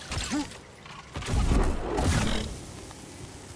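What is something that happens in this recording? A fiery blast bursts with a loud crackling roar.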